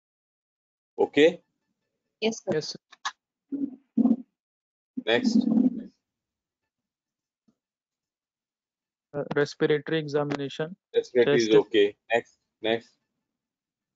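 A woman speaks calmly into a microphone, in short bursts.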